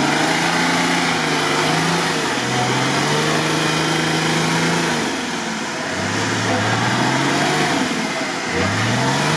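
An off-road vehicle's engine roars and revs as it churns through mud.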